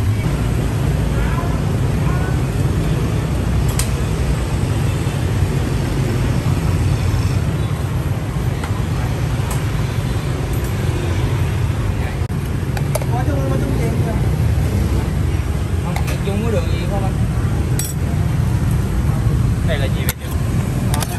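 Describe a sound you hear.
A motorbike engine idles with a low, steady rumble close by.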